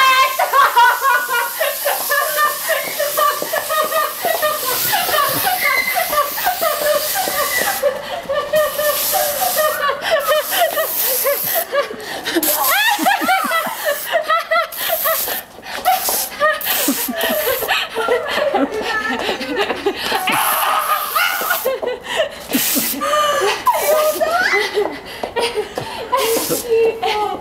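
Young women talk and laugh loudly close by.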